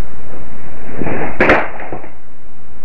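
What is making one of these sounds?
A chair falls over and clatters on a hard floor.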